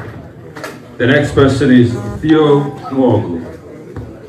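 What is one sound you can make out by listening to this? A man speaks through a microphone over loudspeakers in a large room.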